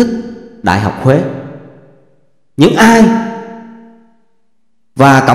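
Men chant together in short, drawn-out phrases, echoing through a large hall.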